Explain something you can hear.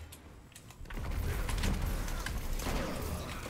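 A gun fires loudly at close range.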